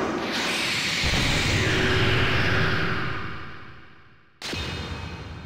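A huge fiery explosion roars and rumbles, then fades away.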